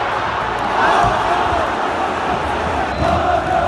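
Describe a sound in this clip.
Nearby fans clap their hands.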